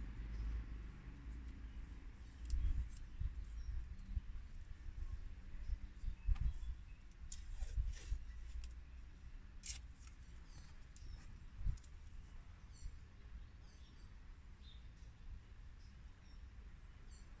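Small plastic parts click and rattle close by.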